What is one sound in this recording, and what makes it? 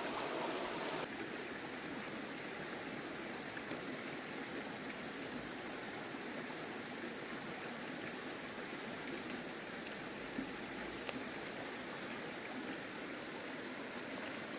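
Leafy stems snap and rustle as a child picks them.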